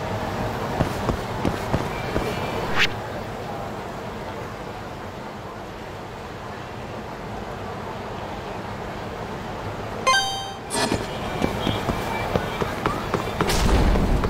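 Footsteps walk at a steady pace on pavement.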